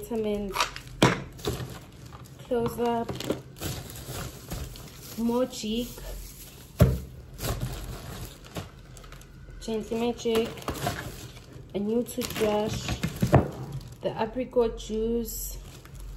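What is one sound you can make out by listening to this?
Plastic wrapping rustles and crinkles in hands.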